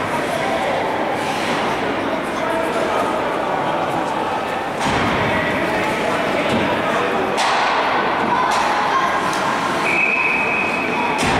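Players call out to each other in a large echoing rink.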